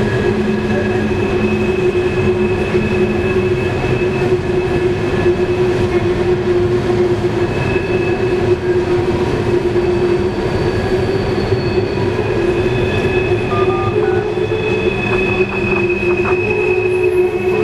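Loaded freight cars rumble and clatter along the rails.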